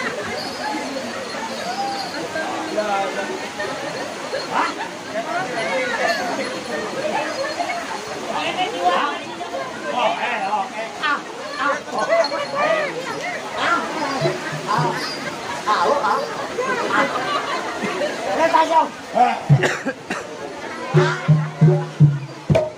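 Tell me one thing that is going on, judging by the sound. A crowd chatters and calls out.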